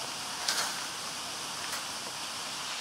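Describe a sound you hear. Twigs snap and crack.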